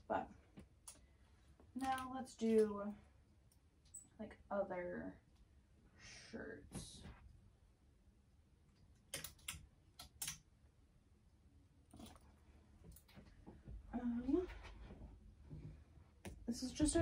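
Plastic hangers clack and rattle against each other.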